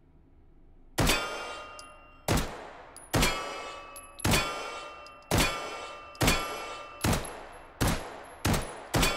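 A pistol fires repeated loud shots that echo in a large hall.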